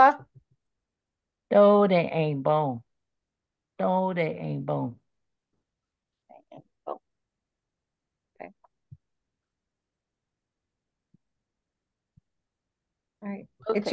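A woman speaks slowly and clearly into a microphone, with pauses.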